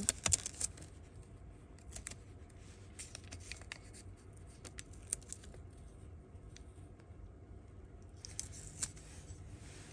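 A plastic strip rustles and crinkles under fingers.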